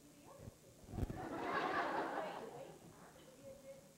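An audience laughs loudly and then dies down.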